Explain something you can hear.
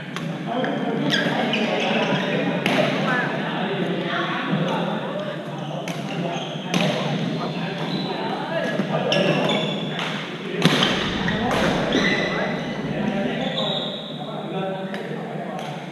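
Shoes squeak and thud on a hard floor.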